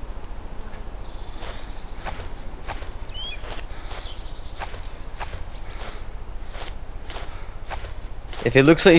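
Grass rustles as a soldier crawls through it.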